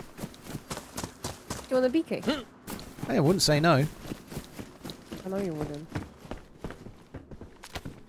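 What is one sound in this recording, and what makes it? Footsteps tread quickly over grass and wooden floor.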